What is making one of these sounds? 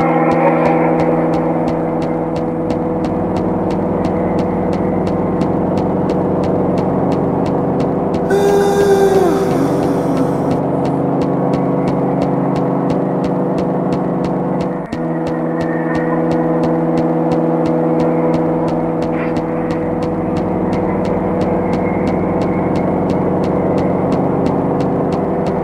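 Footsteps tap quickly and steadily on a hard tiled floor.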